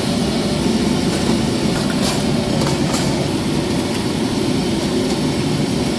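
A metal steamer door clanks shut.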